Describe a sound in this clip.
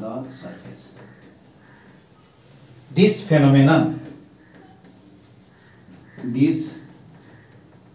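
A man speaks in short bursts, like a teacher explaining.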